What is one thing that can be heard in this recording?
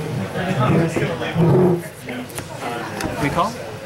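Playing cards slide and tap softly onto a cloth mat.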